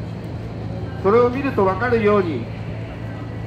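An elderly man speaks loudly into a microphone.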